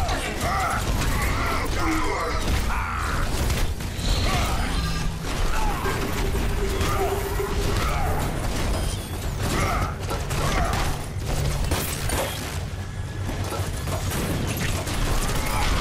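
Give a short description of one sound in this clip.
Energy blasts crackle and zap.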